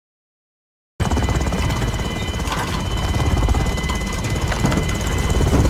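A helicopter's engine and rotors roar steadily from inside the cabin.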